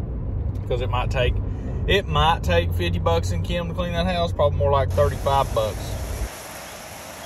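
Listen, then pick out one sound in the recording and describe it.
A young man talks casually and close by.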